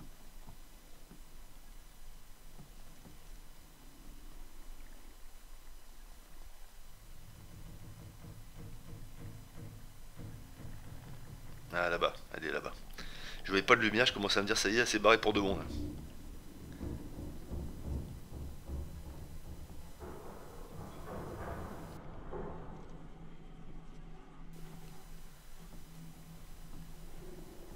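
Slow footsteps thud on creaking wooden boards.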